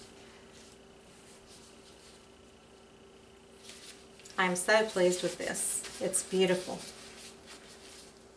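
A paper towel crinkles in handling.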